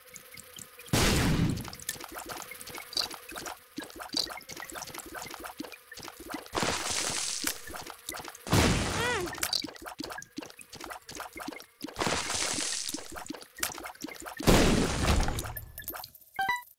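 Loud game blasts burst out now and then.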